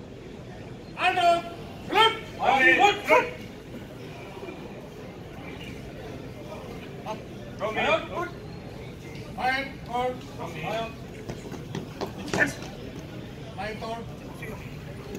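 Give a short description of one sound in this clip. A man shouts loud commands in a large echoing hall.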